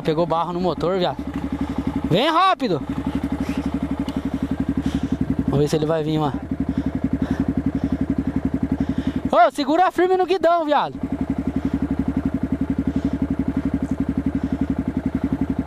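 A single-cylinder four-stroke trail motorcycle chugs at low revs.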